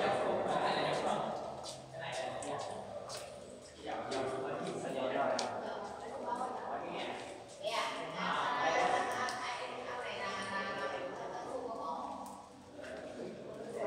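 A man talks with animation nearby, his voice echoing between high rock walls.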